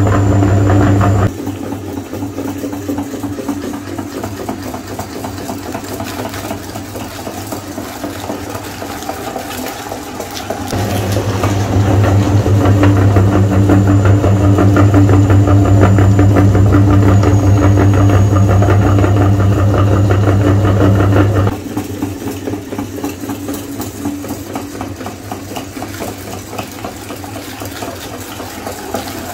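An electric meat grinder hums loudly as it runs.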